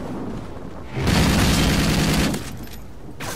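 Rapid gunfire rattles in a game.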